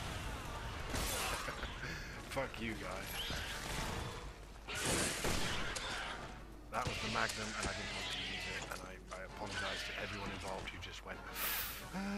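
Gunshots crack and echo.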